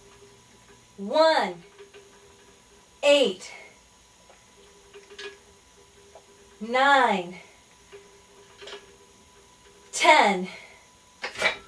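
A woman groans loudly with effort, in short bursts.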